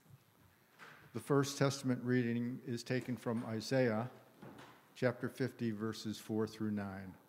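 An elderly man speaks calmly into a microphone, close by.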